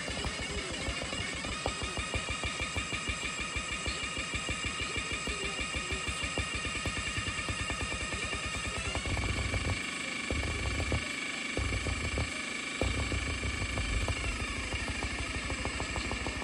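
Fingertips tap rapidly on a glass touchscreen.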